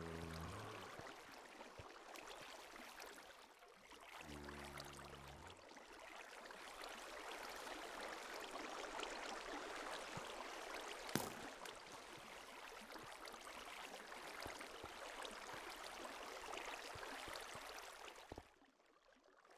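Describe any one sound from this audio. Water flows and splashes steadily.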